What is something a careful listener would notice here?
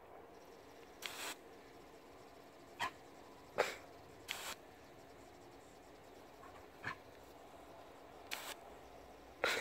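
A dog barks excitedly nearby.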